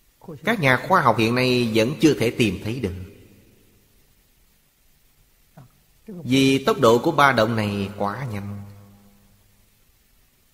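An elderly man speaks calmly, close to a microphone.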